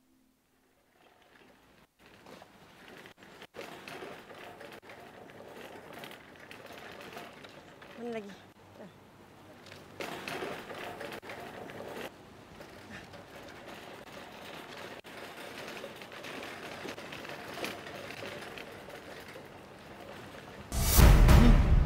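A shopping cart's wheels rattle over pavement.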